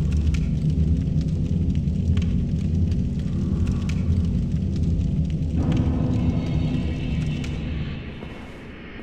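A deep magical rumble drones, then fades away.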